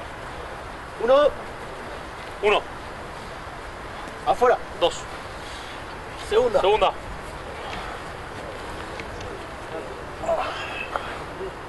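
Young men shout short, sharp calls outdoors.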